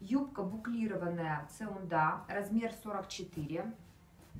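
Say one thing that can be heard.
Fabric rustles softly as clothes are folded.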